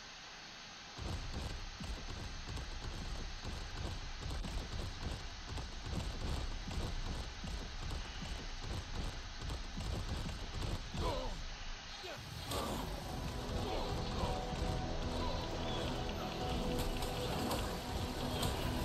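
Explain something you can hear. Heavy footsteps of a large creature thud steadily.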